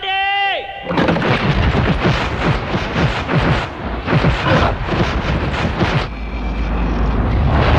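Boulders hurled by catapults whoosh through the air and crash down.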